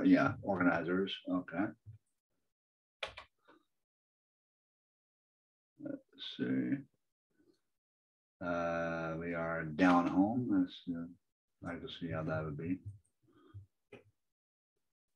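A man talks calmly in short bursts, heard close through a microphone.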